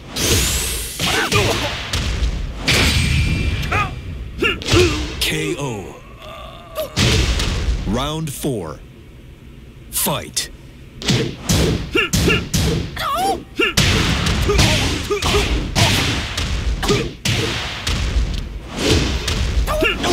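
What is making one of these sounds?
Punches and kicks land with sharp, heavy thuds in quick bursts.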